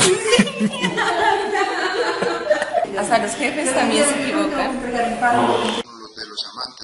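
A second young woman speaks cheerfully close by.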